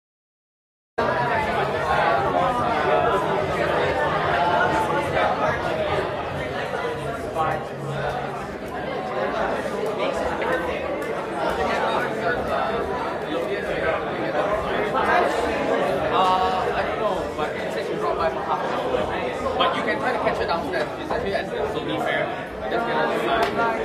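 A crowd of people chatter in a large indoor room.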